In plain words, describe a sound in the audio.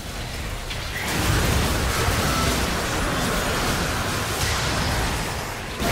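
Video game spell blasts and impact effects burst during a battle.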